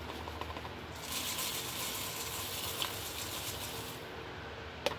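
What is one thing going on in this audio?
Liquid pours through a funnel into a glass flask.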